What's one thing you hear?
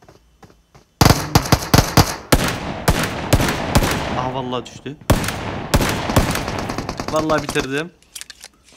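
Pistol shots ring out in a video game.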